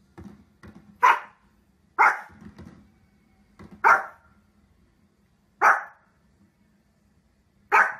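A small dog barks loudly and sharply, again and again.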